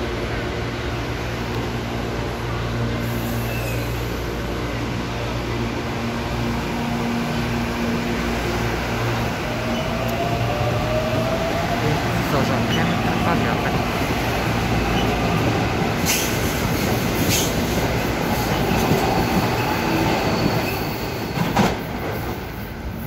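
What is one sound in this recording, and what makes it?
A passenger train pulls out of a station, rumbling and clattering on the rails as it speeds up.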